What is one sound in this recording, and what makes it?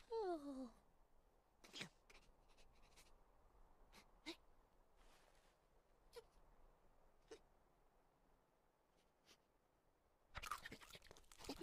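A cartoon squirrel squeaks and chatters excitedly.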